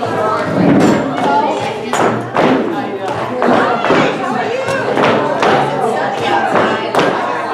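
Shoes step and scuff in rhythm on a wooden floor in a large echoing hall.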